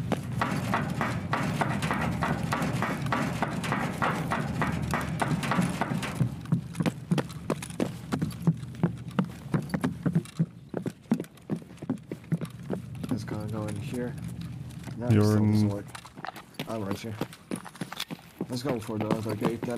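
Quick footsteps clatter on metal and hard floors.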